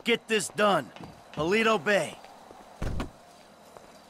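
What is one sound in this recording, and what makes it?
A van door opens with a clunk.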